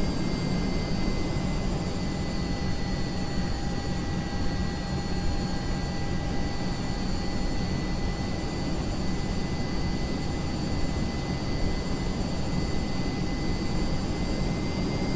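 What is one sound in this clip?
A jet engine roars steadily with a high whine.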